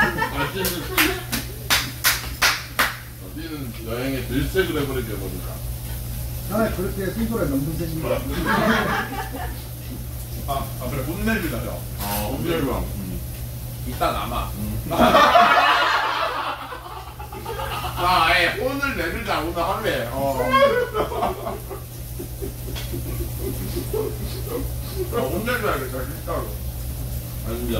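Young men and women talk and chatter together at close range.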